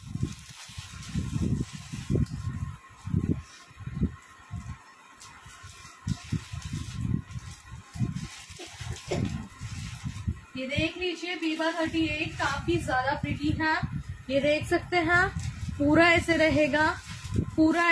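Fabric rustles and flaps as it is handled close by.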